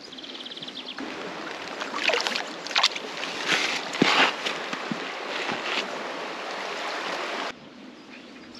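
A stream trickles and splashes over stones.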